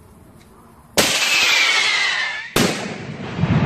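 A firework rocket hisses and whistles as it flies.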